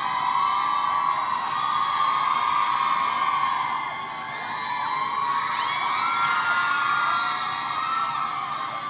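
A young man sings through a microphone.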